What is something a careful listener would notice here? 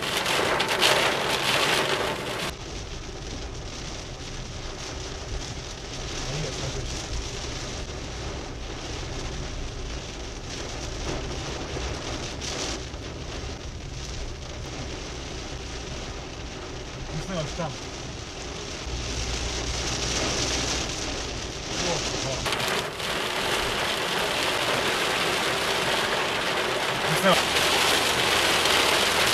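A car engine hums low while driving.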